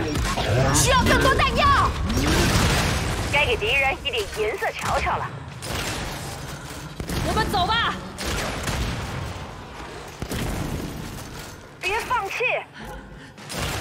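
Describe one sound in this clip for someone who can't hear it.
Gunshots crack in bursts.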